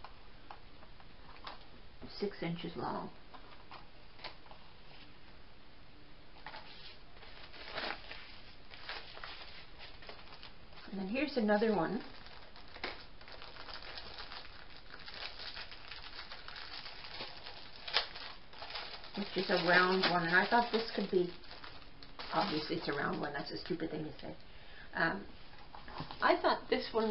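Stiff paper sheets rustle and slide against each other.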